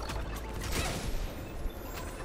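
A small explosion bursts with a crackle of sparks.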